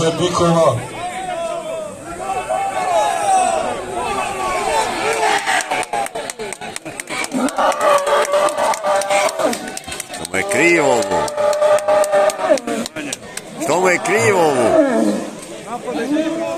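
Men call out loudly nearby.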